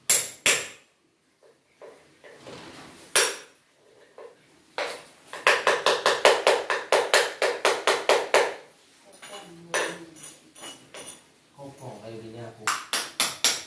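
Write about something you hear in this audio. A hammer chisels rapidly at tiles and concrete, with sharp metallic knocks.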